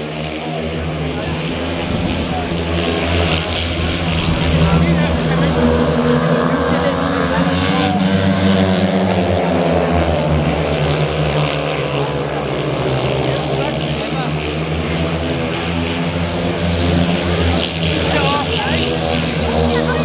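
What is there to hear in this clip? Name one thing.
Motorcycle engines roar and whine as they race around a track.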